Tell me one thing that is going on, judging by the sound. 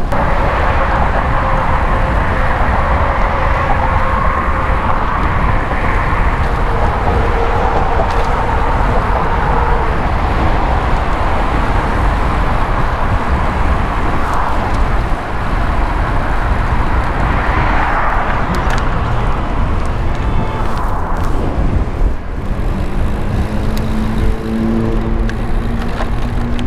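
Wind rushes loudly past a moving rider.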